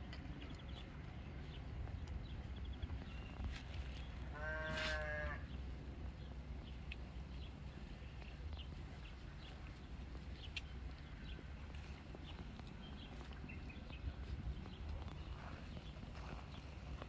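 Sheep crop and chew grass.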